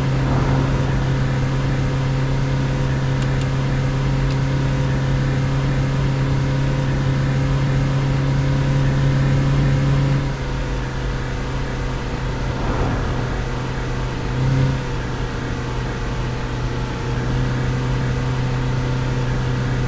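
A diesel engine hums steadily as a vehicle drives along.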